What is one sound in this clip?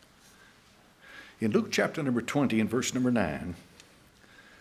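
An elderly man speaks firmly through a microphone.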